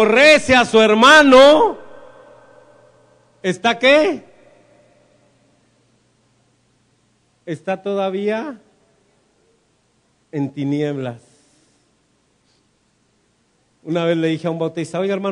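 A man preaches with animation through a microphone and loudspeakers, in short bursts with pauses, in an echoing room.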